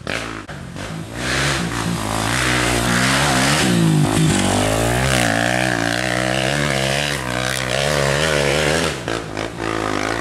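A dirt bike engine revs and whines as it approaches, passes close and fades uphill.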